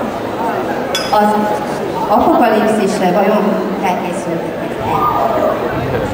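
A young woman speaks into a microphone, heard through loudspeakers in a large hall.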